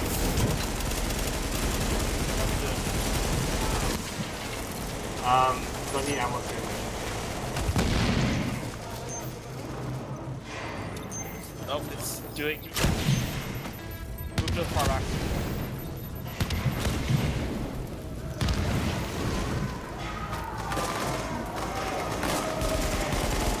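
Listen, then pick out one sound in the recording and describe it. Gunshots crack in bursts.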